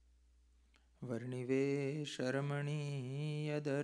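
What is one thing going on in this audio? A man chants in a sustained, melodic voice close to a microphone.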